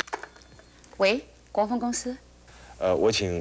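A woman speaks calmly over a telephone.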